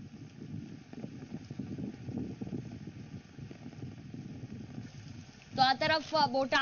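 Rain pours down onto waterlogged ground.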